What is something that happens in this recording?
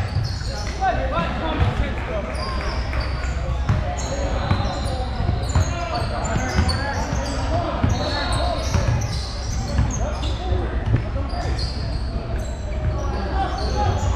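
Young players and spectators call out in a large echoing gym.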